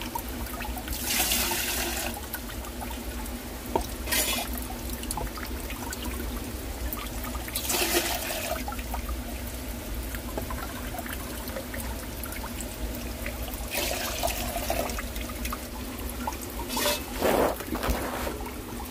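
Water splashes as a ladle is poured into a jar.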